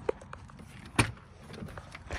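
A van's door handle clicks.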